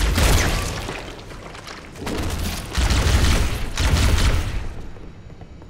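A futuristic energy gun fires booming blasts.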